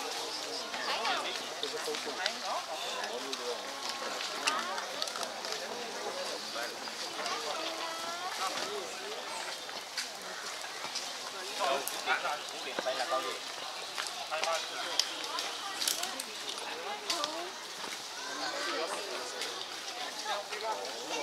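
Leafy branches rustle as giraffes pull and strip leaves.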